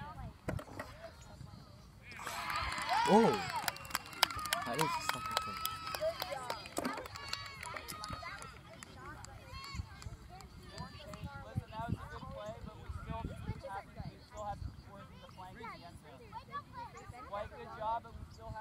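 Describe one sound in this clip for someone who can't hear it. Young players shout and call out across an open playing field outdoors.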